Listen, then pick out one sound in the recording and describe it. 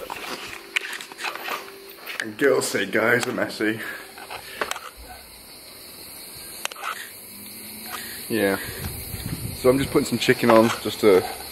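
A young man talks casually and close to a microphone.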